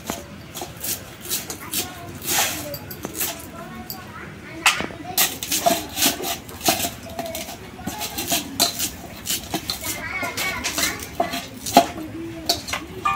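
A knife clicks and scrapes while cutting vegetables.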